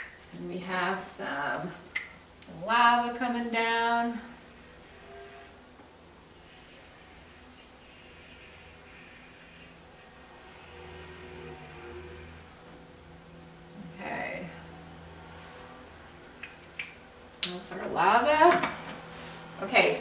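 An older woman speaks calmly nearby.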